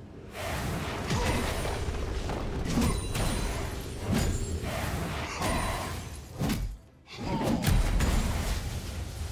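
Magic spells whoosh and crackle in a game battle.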